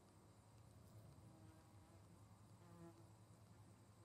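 An osprey chirps faintly nearby.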